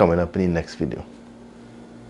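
A man speaks calmly and close to the microphone.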